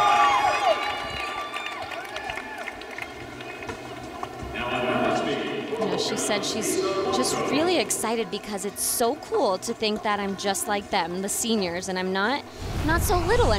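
A large crowd cheers and applauds in a big echoing arena.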